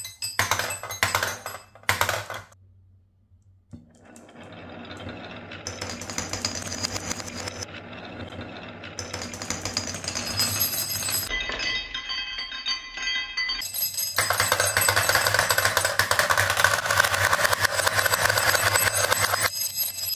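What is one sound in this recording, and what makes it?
Marbles clatter into a plastic toy truck.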